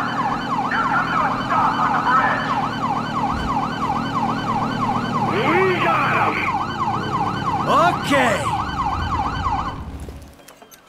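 A police siren wails rapidly.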